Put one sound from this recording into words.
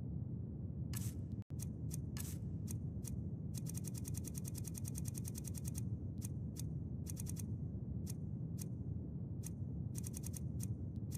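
Short menu clicks tick in quick succession.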